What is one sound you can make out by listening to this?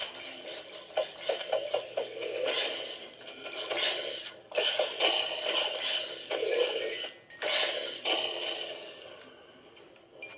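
Video game fighting sounds play from a television speaker.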